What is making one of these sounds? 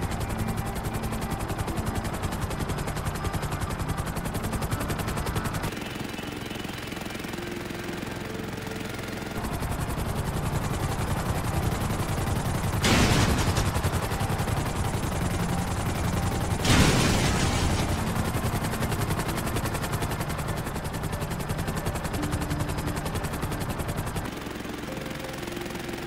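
A helicopter's rotor chops loudly and steadily close by.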